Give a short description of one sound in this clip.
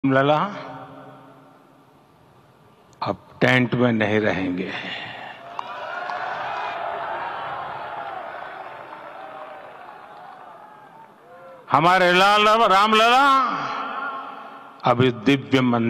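An elderly man speaks forcefully into a microphone, his voice echoing through loudspeakers outdoors.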